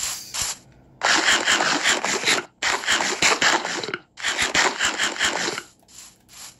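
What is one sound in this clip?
Footsteps crunch steadily on grass and gravel.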